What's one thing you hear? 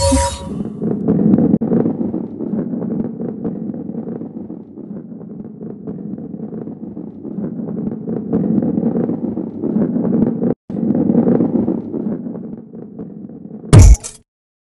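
A ball rolls with a steady wooden rumble.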